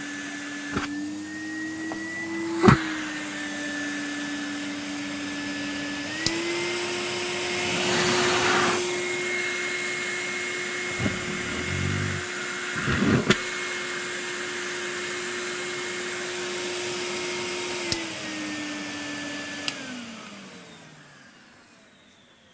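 A vacuum cleaner motor whirs steadily, then winds down and stops.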